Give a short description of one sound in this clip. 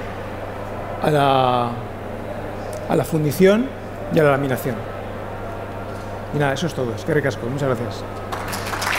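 A man speaks through a microphone in a large hall, pausing between phrases.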